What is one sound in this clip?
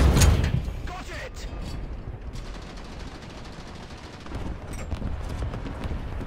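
An explosion bursts and crackles.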